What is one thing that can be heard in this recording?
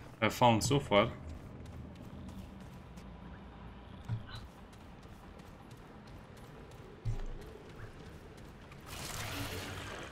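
Footsteps of armoured boots scrape on stone.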